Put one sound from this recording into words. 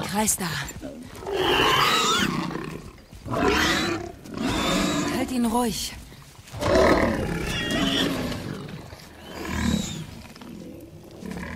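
A man groans and grunts in pain nearby.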